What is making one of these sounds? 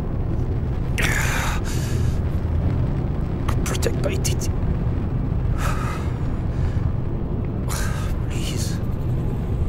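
A man pleads weakly and breathlessly, close by.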